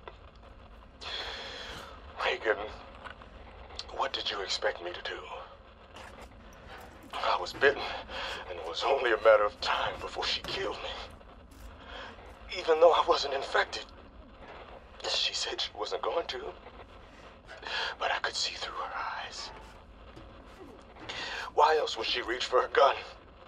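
A woman's recorded voice speaks calmly through a small device speaker.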